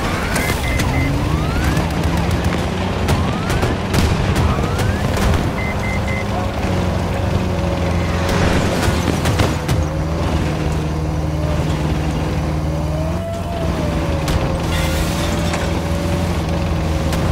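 An armoured vehicle's engine rumbles and whines steadily.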